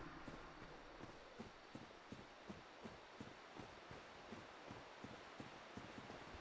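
Footsteps crunch quickly through undergrowth.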